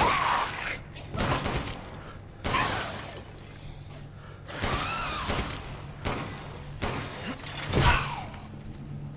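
A monster snarls and shrieks.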